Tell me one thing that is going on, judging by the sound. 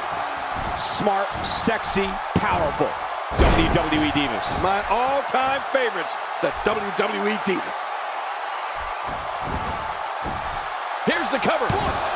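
Bodies thud heavily onto a wrestling ring mat.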